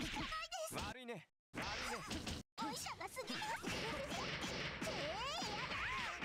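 Punches and kicks land with sharp smacks.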